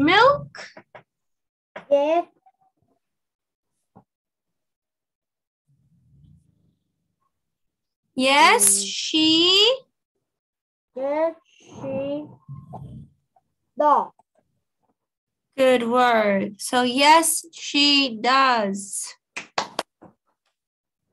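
A woman speaks clearly and with animation over an online call.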